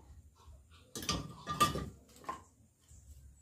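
Wood knocks and clatters as it is pushed into a fire.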